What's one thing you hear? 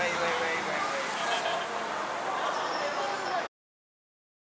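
A busy city street murmurs in the background.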